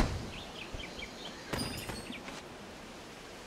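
A blade slashes and thuds against a creature.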